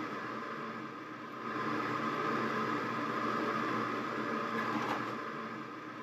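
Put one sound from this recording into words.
Liquid pours into a container.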